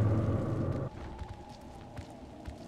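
Footsteps knock on wooden boards.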